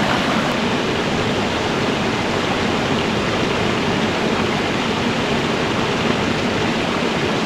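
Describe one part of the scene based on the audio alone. A stream rushes steadily over rocks nearby.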